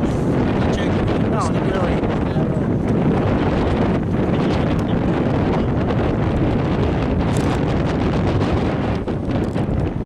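Wind buffets the microphone steadily outdoors.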